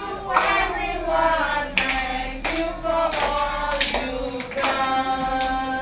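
A woman claps her hands in rhythm.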